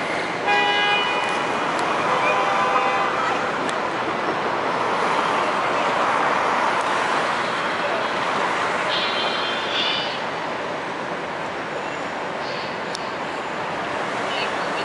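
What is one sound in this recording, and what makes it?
City traffic hums and rushes steadily outdoors.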